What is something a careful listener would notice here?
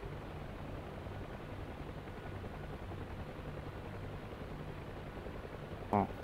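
A helicopter's rotor thumps and its engine drones steadily from inside the cabin.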